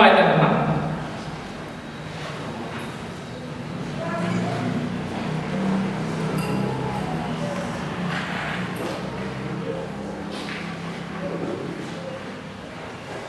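A man speaks calmly into a microphone, heard through loudspeakers in an echoing hall.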